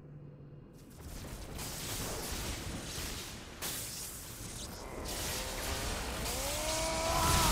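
Electricity crackles and sizzles loudly.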